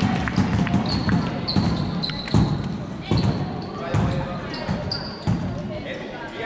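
Players' shoes squeak sharply on a hard floor in a large echoing hall.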